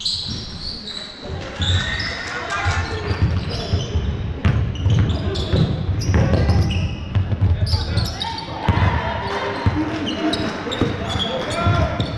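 Sneakers squeak sharply on a hardwood floor in a large echoing hall.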